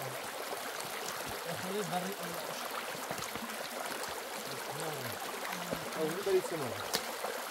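Shallow water trickles steadily over stones.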